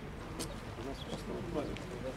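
Several people walk with footsteps on pavement.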